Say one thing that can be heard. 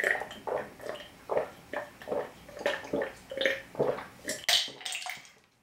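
A man gulps down a drink in loud, rhythmic swallows.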